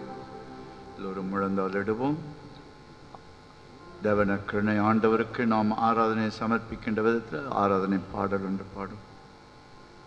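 An elderly man speaks slowly and solemnly through a microphone.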